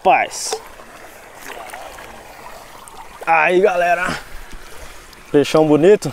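Water splashes steadily from a fountain outdoors.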